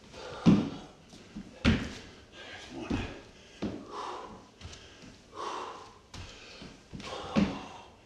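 Feet thump on a wooden floor.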